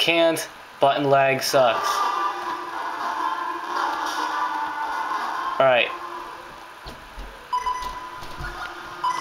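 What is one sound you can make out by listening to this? Video game music plays through small laptop speakers.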